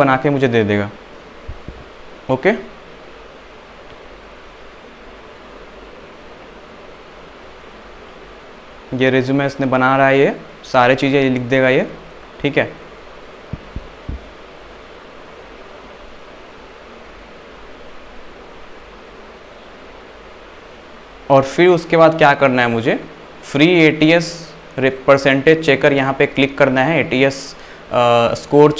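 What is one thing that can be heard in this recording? A young man speaks calmly and close to a microphone, in short bursts with pauses.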